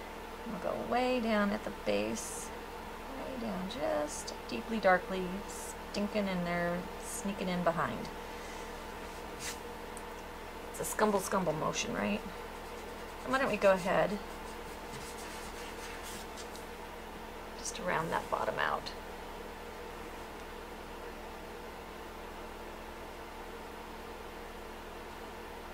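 A paintbrush strokes softly across a surface.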